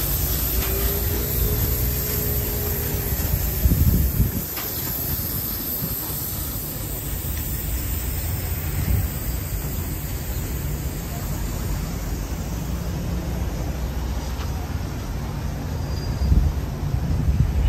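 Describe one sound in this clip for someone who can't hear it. Wind rumbles outdoors throughout.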